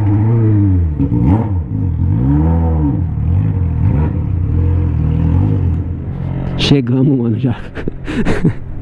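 Engine revs blip up and down briefly while the motorcycle rolls slowly.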